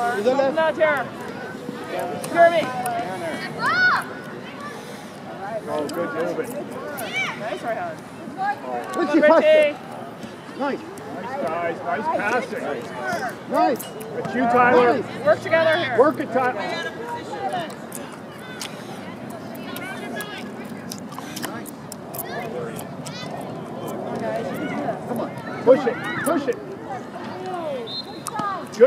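Spectators and young players shout and call out across an open outdoor field.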